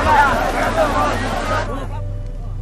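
A crowd of men and women shout and clamour close by.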